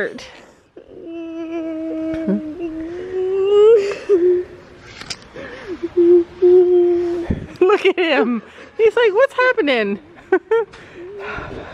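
A young girl cries and whimpers close by.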